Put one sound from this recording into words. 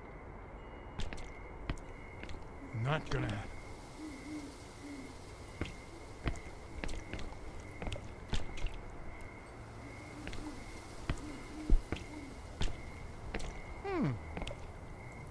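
Footsteps crunch on gravel at a slow walk.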